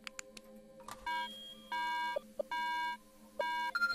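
A computer panel gives off a series of steady electronic beeps.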